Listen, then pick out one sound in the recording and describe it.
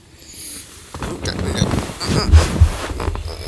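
A tent wall flaps and rustles close by.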